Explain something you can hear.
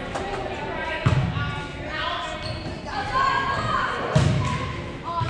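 A volleyball thumps when it is hit.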